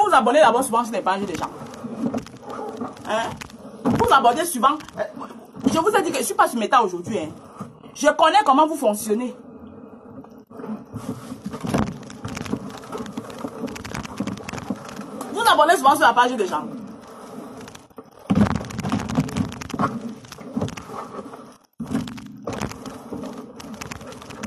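A steam iron hisses and thuds on fabric.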